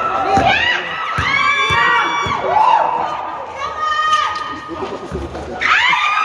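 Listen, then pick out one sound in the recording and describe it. A basketball thumps on the court.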